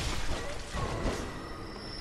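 A blade swings and strikes an enemy.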